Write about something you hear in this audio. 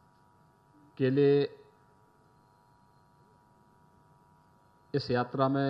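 A middle-aged man speaks forcefully into a microphone over a loudspeaker, pausing between phrases.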